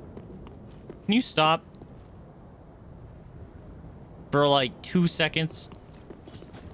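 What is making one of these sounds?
A young man speaks briefly and casually into a close microphone.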